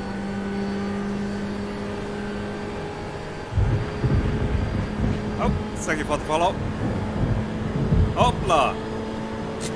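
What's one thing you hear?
A racing car engine hums steadily.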